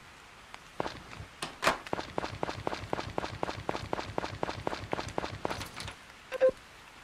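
Footsteps patter quickly on the ground.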